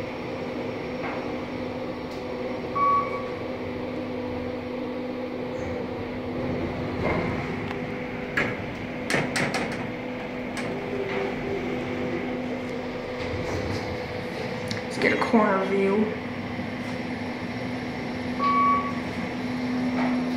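An elevator hums steadily.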